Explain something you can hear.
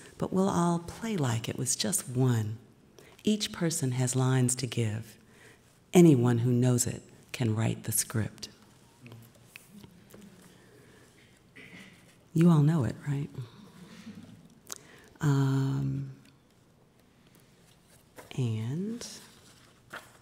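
A middle-aged woman reads aloud calmly into a microphone, with pauses.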